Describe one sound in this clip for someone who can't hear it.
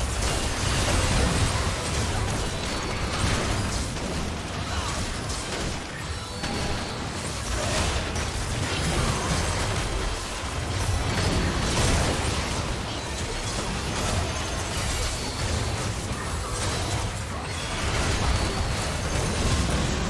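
Fantasy battle sound effects crackle, whoosh and boom without pause.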